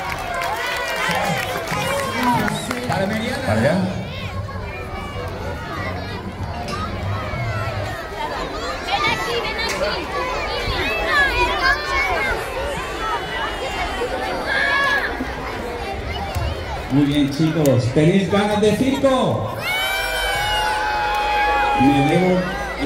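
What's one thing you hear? A crowd of children chatters and shouts outdoors.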